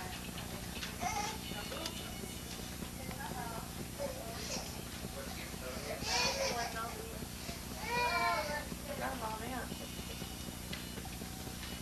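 Several young people chat and laugh nearby.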